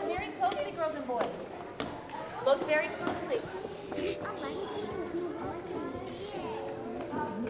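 Children chatter and call out excitedly in a large echoing hall.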